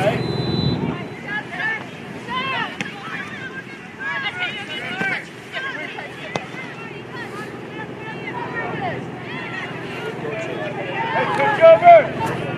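Spectators cheer and call out from the sidelines.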